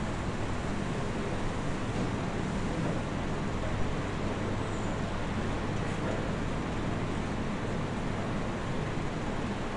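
Ceiling fans whir steadily.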